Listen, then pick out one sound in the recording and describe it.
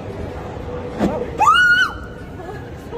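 A young woman shrieks in fright close by.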